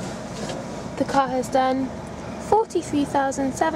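A car's warning chime beeps repeatedly.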